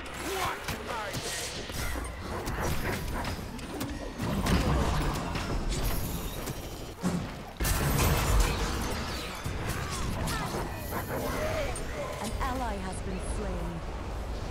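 Weapons strike and clash in close combat.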